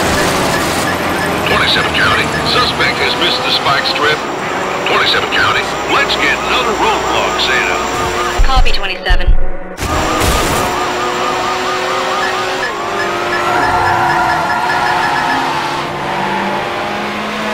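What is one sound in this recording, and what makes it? A racing car engine roars and revs steadily.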